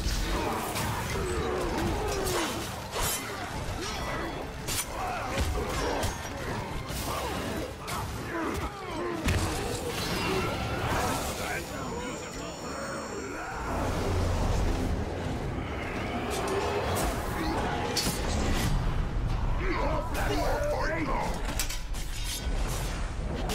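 Swords clash and strike again and again in a fierce fight.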